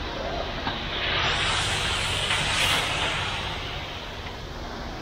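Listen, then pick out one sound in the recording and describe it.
A rake scrapes through wet concrete.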